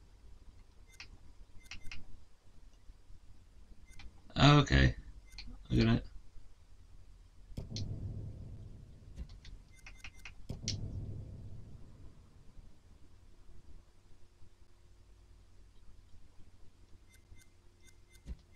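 Soft menu clicks tick as selections change.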